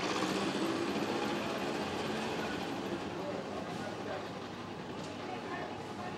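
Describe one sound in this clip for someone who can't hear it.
A motorbike engine putters by slowly.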